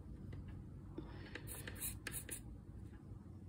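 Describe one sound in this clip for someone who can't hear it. Solder flux sizzles briefly under a soldering iron.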